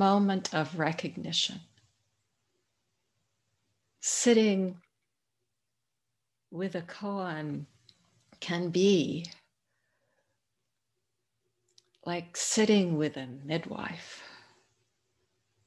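An elderly woman speaks calmly over an online call, in short bursts with pauses.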